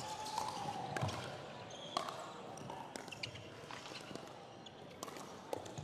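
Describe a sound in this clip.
Paddles knock a plastic ball back and forth with sharp pops in a large echoing hall.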